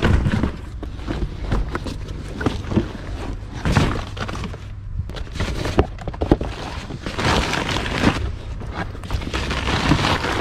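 Leather clothing rustles and creaks as it is handled.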